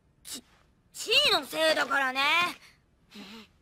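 A young boy speaks crossly, close by.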